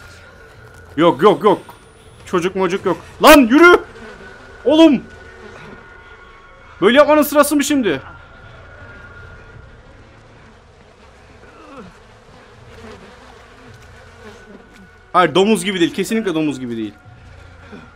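A young man speaks close to a microphone in short loud bursts, with animation.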